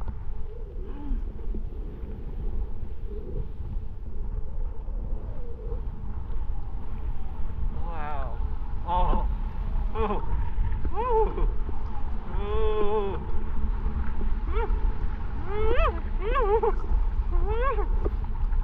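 Wind buffets the microphone with a steady low rumble.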